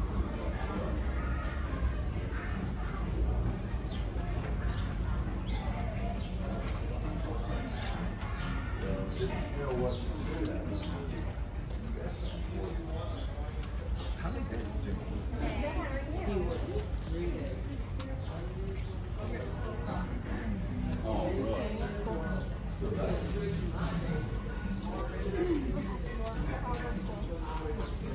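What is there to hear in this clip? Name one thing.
Men and women chatter and murmur nearby in a busy indoor space.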